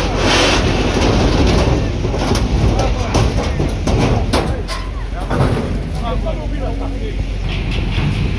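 Men talk and shout excitedly nearby.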